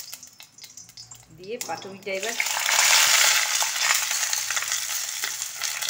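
A spoon scrapes batter from a metal bowl.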